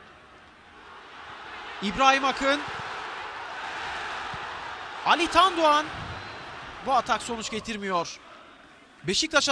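A large stadium crowd roars and cheers, swelling then fading.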